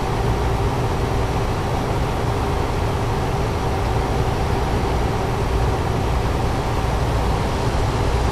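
Tyres roll with a steady roar on the road.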